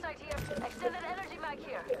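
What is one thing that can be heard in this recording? A gun fires a burst of shots close by.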